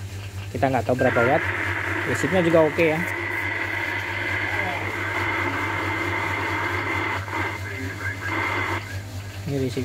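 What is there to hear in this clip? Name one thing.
A radio hisses with steady static.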